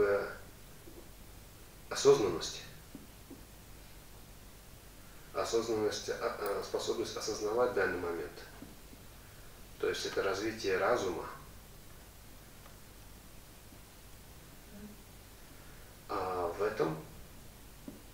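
A man speaks calmly into a headset microphone, in short phrases with pauses.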